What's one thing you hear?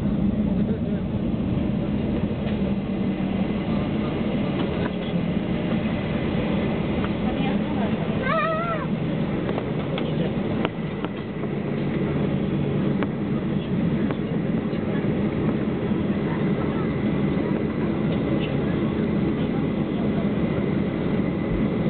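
Jet engines roar steadily from inside an airliner cabin.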